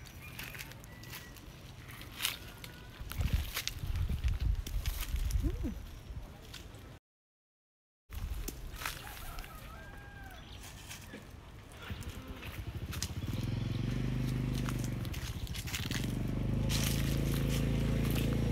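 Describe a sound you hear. Leaves rustle as branches are pulled and handled.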